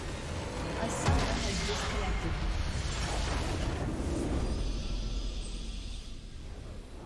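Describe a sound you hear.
Loud battle effects crash and blast in a video game.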